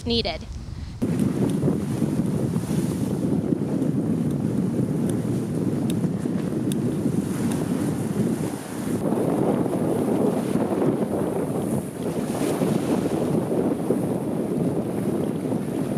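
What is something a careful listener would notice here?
Choppy waves splash and slosh against a barrier.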